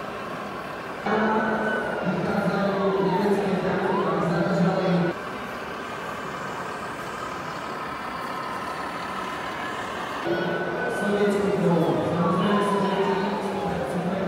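A toy fire engine's electronic siren wails in two bursts.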